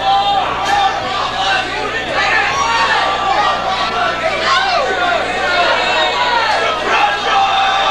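A rock band plays loud live music.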